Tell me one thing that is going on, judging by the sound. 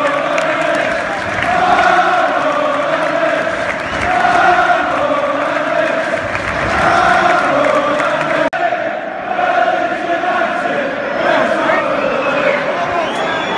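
A large crowd sings a rhythmic chant that echoes around a big open stadium.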